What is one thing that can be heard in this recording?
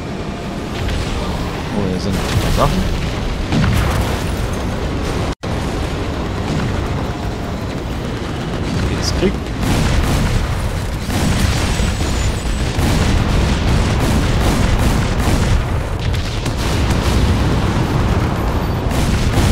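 A heavy engine rumbles steadily.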